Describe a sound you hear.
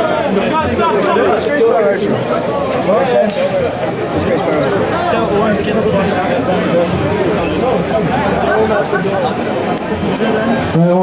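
A crowd chatters and murmurs in the background.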